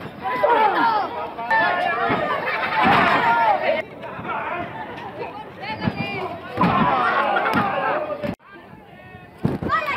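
A crowd shouts and cheers nearby.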